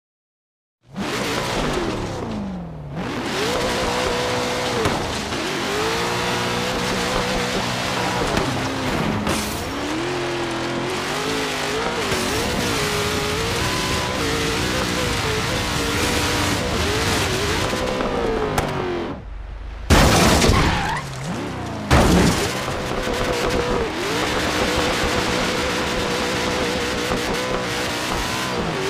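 A truck engine roars and revs up and down.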